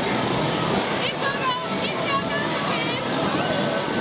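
A little girl squeals and laughs with delight.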